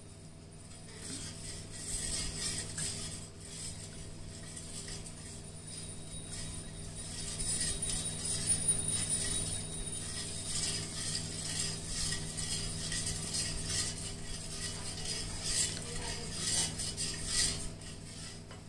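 A metal spoon stirs liquid and scrapes against a steel pot.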